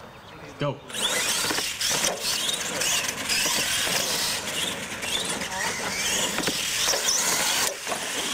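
Small electric motors whine loudly as toy trucks race over pavement.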